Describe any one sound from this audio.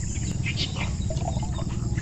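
Water pours from a jug into a bottle.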